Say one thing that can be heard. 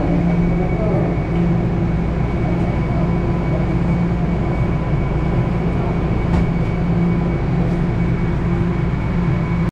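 A subway train's motor hums steadily inside the car.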